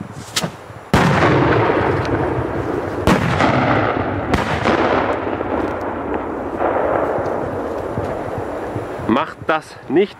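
Smoke bombs hiss loudly as they pour out smoke.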